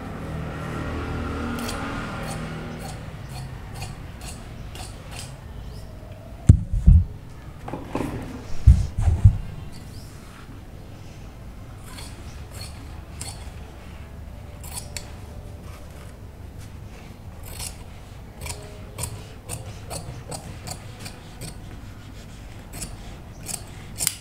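Scissors snip through fabric in short, crisp cuts.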